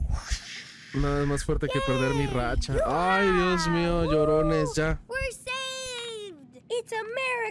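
A young boy shouts and cheers excitedly.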